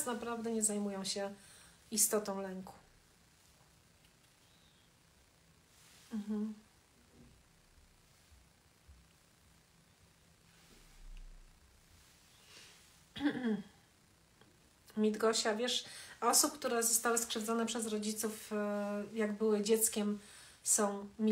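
A middle-aged woman speaks calmly and close up.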